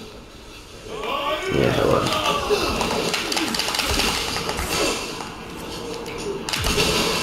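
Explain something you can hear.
A man roars and grunts loudly up close.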